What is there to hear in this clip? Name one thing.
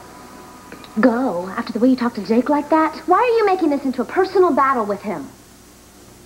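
A young woman speaks with feeling at close range.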